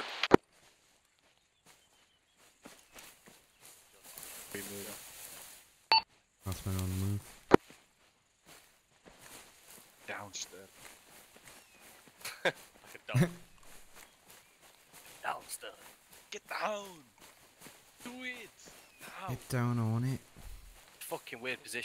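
Dry grass rustles as someone walks through it.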